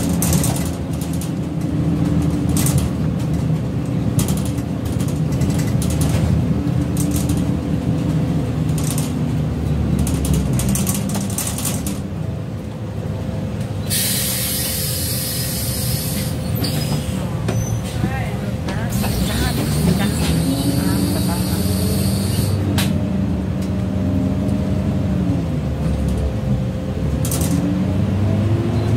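A bus rattles and clatters as it drives.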